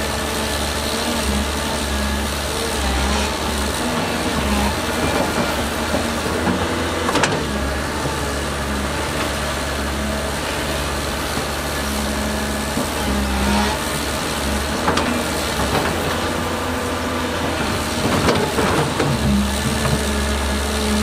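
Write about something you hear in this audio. An excavator engine drones and revs as the arm swings.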